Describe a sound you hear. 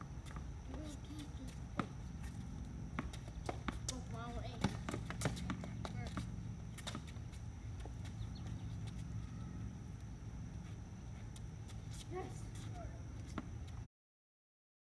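A basketball bounces on concrete.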